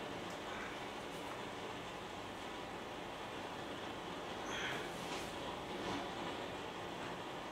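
A potter's wheel whirs steadily.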